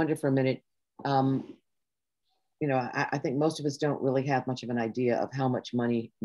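An elderly woman speaks steadily over an online call.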